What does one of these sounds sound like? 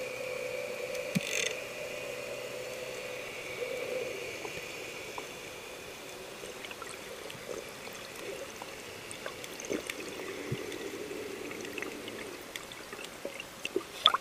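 Underwater, the sea crackles and ticks softly.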